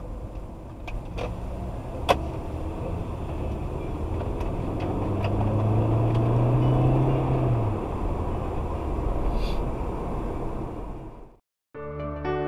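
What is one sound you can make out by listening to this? Tyres rumble on the road surface.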